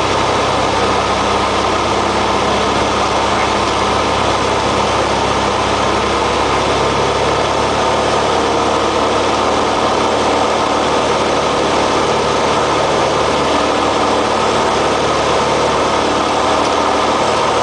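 A small plane's engine drones loudly and steadily from inside the cabin.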